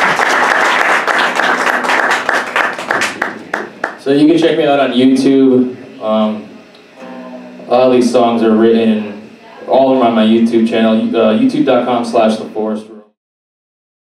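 An electric guitar is strummed with loud chords.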